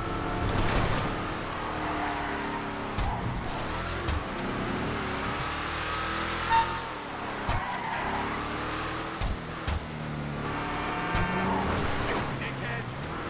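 A truck engine roars and revs up and down.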